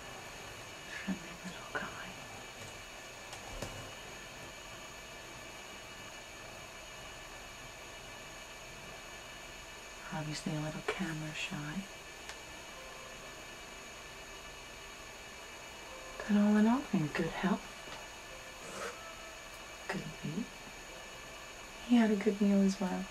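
A woman talks calmly close by, in short bursts.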